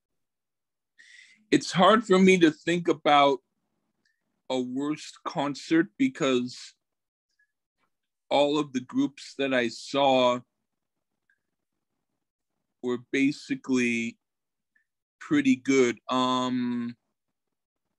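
A middle-aged man speaks loudly and with animation over an online call, in short bursts with pauses.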